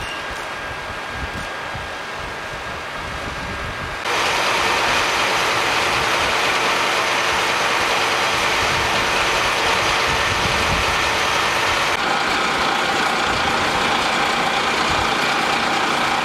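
A fire engine's motor hums steadily nearby.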